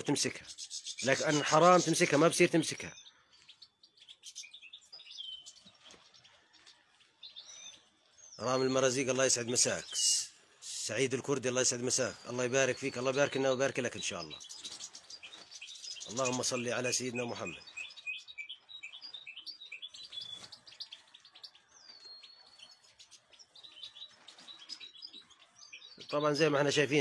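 Small birds chirp and twitter close by.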